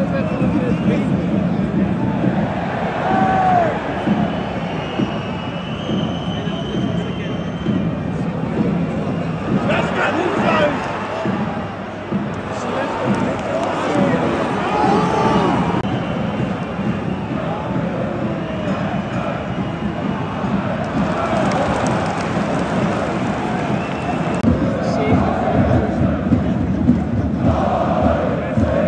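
Fans nearby shout and whistle.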